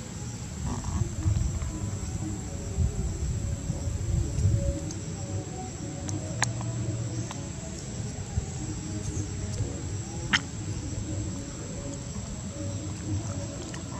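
A monkey chews fruit with soft smacking sounds.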